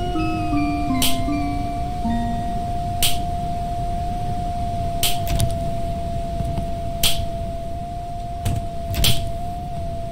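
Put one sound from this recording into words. Footsteps thud slowly and evenly on a hard floor.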